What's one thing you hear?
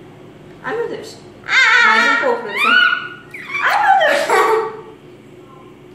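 A young girl laughs and squeals excitedly close by.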